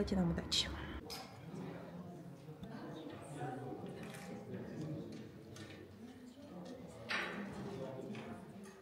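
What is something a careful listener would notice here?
Quiet murmur of people talking echoes in a large hall.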